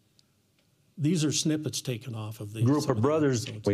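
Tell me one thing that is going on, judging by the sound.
A man talks through a loudspeaker.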